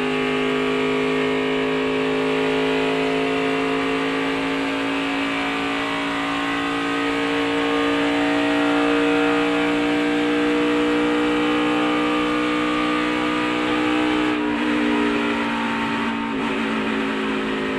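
Loose parts rattle and buzz inside the car's cabin.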